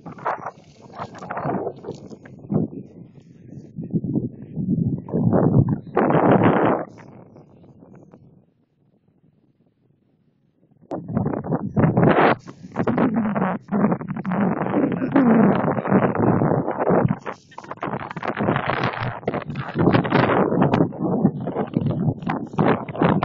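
Wind blows hard outdoors against the microphone.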